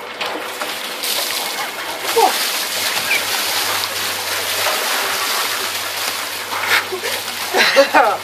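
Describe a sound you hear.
Icy water gushes from a tipped cement mixer drum onto a seated man.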